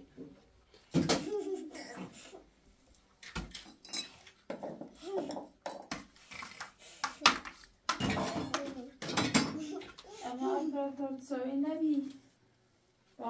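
A small child babbles and laughs nearby.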